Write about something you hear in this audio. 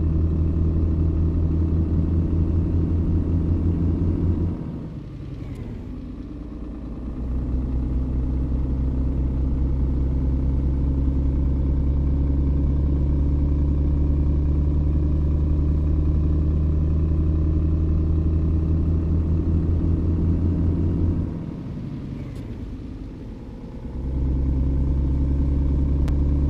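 A diesel truck engine pulls under load, heard from inside the cab.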